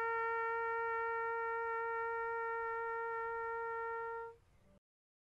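A bugle plays a long, steady note outdoors, then stops.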